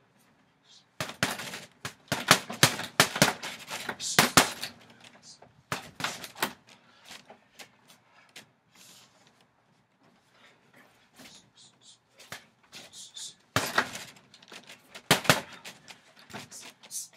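Gloved punches thud against a heavy punching bag.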